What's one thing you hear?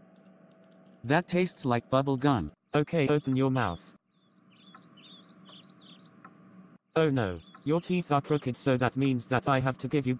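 A man speaks calmly in a synthetic-sounding voice.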